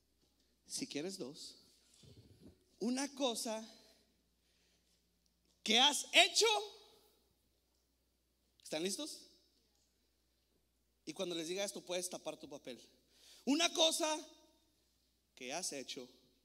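A young man speaks with animation into a microphone in a large hall, in short bursts with pauses.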